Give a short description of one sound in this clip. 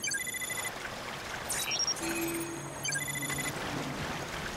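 Electronic beeps and chirps sound in quick bursts.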